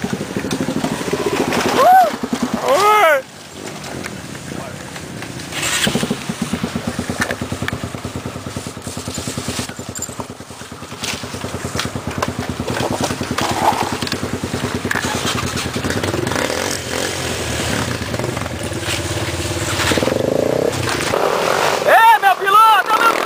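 Dirt bike engines putter and rev nearby outdoors.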